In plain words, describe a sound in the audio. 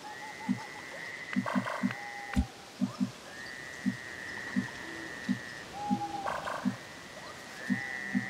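Low muffled thumps pulse at uneven intervals.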